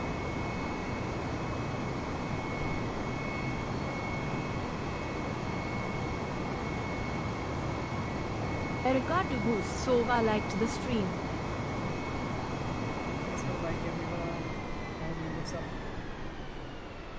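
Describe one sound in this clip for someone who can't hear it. Jet engines roar steadily with a high whine, fading slightly toward the end.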